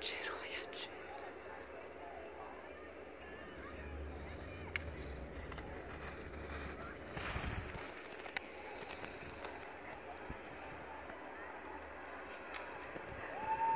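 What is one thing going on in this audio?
Skis carve and scrape across packed snow, loudest as the skier passes close by.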